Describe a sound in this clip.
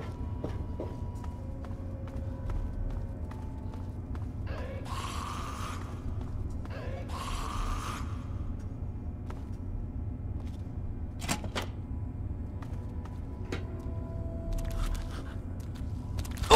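Footsteps crunch over rough ground.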